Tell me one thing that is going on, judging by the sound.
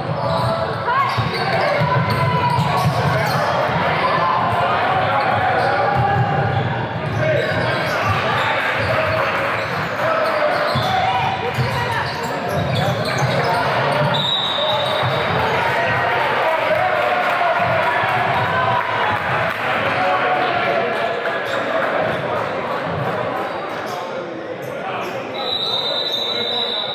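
Sneakers squeak on a hardwood basketball court.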